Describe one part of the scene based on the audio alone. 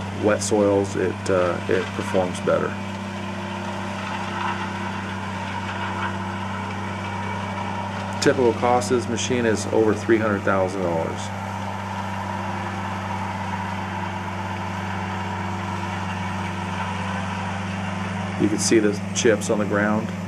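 A heavy tracked machine's diesel engine hums steadily nearby outdoors.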